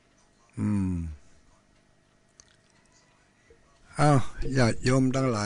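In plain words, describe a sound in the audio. An elderly man chants slowly into a microphone.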